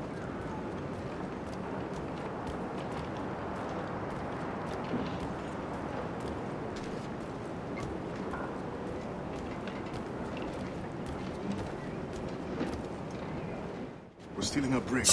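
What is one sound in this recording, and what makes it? Footsteps creak on wooden boards.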